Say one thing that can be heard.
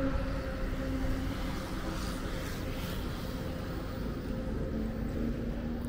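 Cars drive past on a nearby road with a low engine rumble.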